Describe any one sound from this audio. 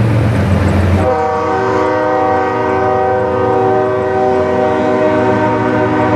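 A train horn blows long and steady.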